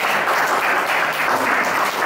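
Several girls clap their hands.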